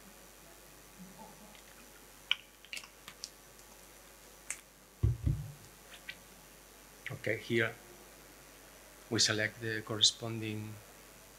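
A man speaks calmly into a microphone in a large room, with pauses between phrases.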